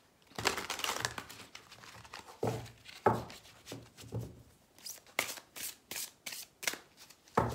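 Playing cards are shuffled by hand, with quick papery flicks.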